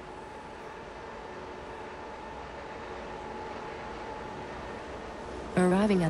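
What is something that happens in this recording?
A subway train hums and whines as it approaches through a tunnel.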